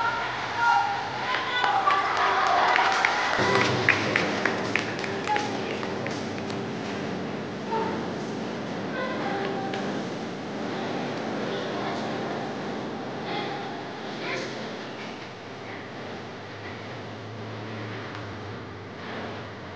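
Music plays loudly over loudspeakers in a large echoing hall.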